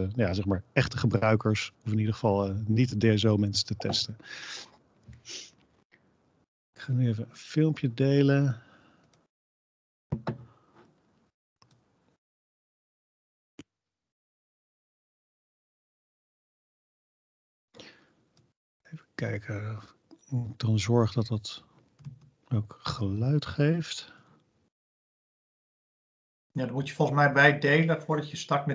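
A man speaks calmly over an online call, with pauses.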